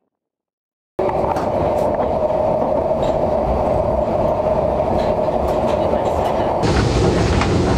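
A train rumbles loudly along its track.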